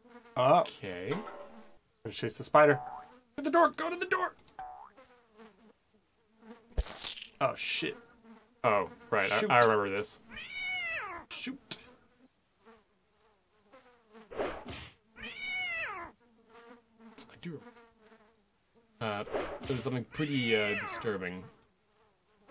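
A second young man talks through a microphone.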